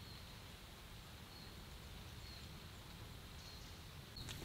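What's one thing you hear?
Light rain patters steadily on trees outdoors.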